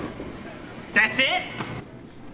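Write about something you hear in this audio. A young man speaks loudly nearby.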